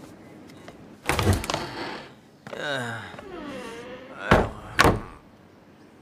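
A wooden door rattles open and bangs.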